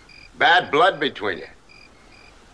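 A man speaks calmly and quietly up close.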